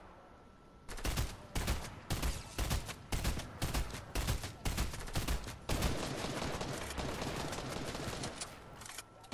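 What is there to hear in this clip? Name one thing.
An assault rifle fires in rapid shots.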